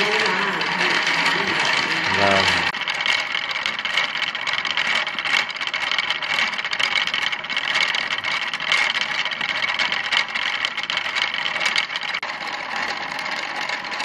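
A wooden spinning wheel rattles and creaks as it turns.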